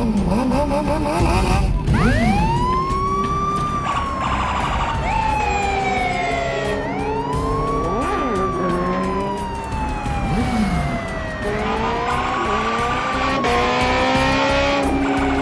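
Motorcycle engines roar and rev as the motorcycles ride past.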